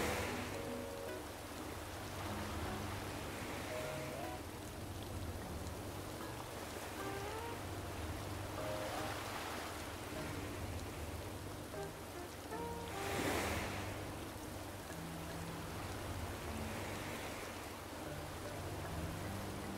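Waves wash against a shore.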